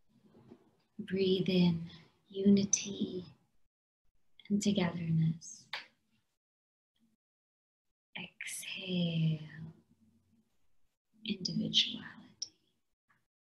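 A young woman chants slowly over an online call.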